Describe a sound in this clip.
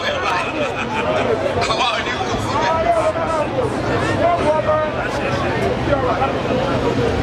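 A crowd of men and women talk and call out all around, close by.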